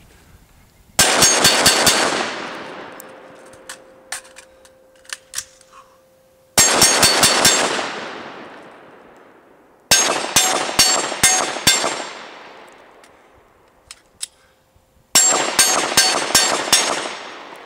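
A pistol fires rapid bursts of shots outdoors, each echoing away.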